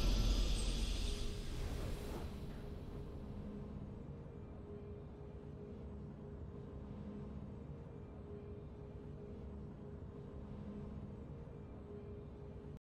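Soft, steady game music plays.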